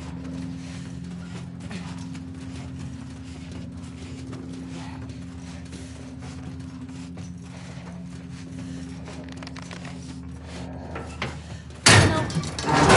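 Clothing and limbs scrape softly against a metal duct.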